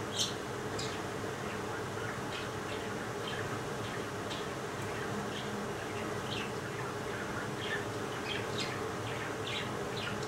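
A spatula scrapes and stirs inside a metal bowl.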